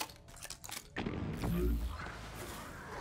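A heavy impact booms with a low rumble.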